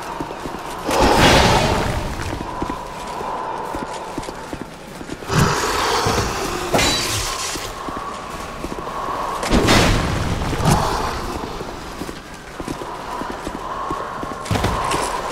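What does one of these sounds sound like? Swords clash and strike with sharp metallic impacts.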